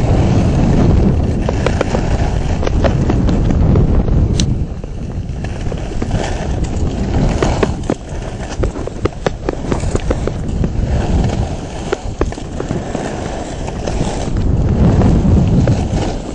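Wind rumbles against the microphone.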